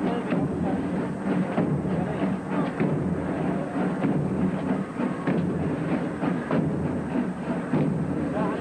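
A crowd murmurs and calls out outdoors.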